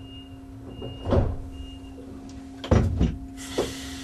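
Train wheels thump over rail joints.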